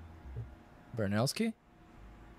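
A man says a few words briefly into a close microphone.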